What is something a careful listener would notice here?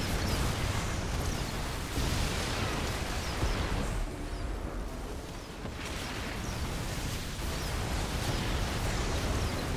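Rapid gunfire rattles in a game battle.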